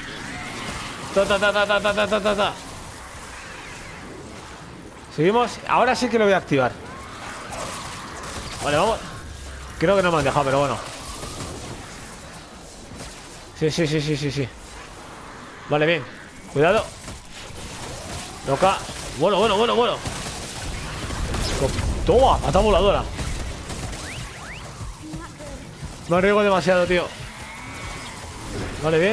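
Blades swish and strike in a fast fight.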